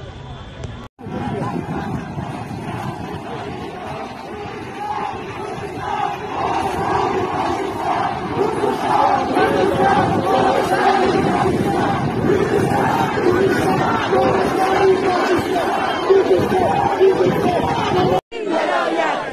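A large crowd chants together outdoors.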